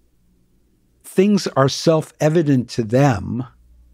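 An elderly man speaks with animation, close to a microphone.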